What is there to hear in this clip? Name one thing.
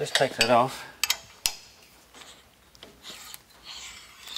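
A metal clamp clicks and clanks as it is tightened.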